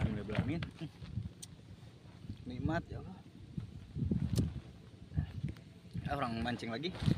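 A young man speaks casually close to the microphone.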